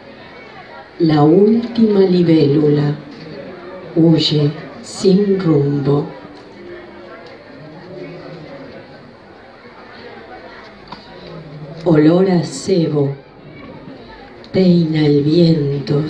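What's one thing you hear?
A woman reads out slowly through a microphone, in a hall with some echo.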